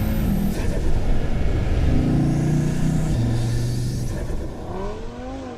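A car engine roars loudly, up close, climbing through the gears.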